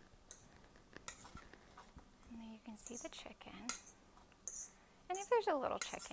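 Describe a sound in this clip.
A metal bowl clinks as food is scraped into a pan.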